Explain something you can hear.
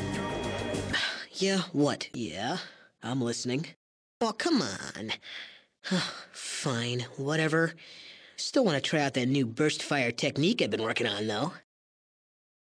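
A young man speaks casually and with animation, close up.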